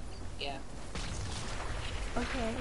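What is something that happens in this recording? Water splashes as a figure dives in.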